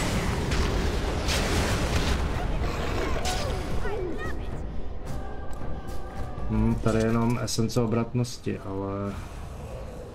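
Magic bursts crackle and whoosh.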